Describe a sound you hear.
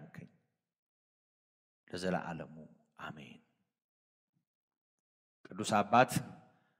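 A man speaks calmly and slowly into a microphone, with pauses.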